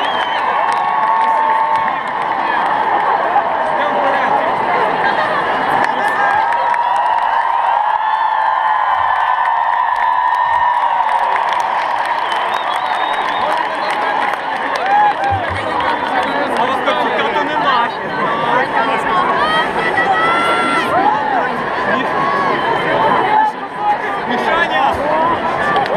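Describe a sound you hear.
Loud music plays from a stage over big loudspeakers.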